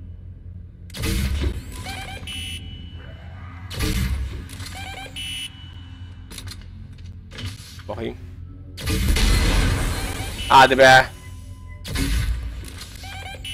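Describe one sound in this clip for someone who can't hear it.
A futuristic weapon fires in loud, short bursts.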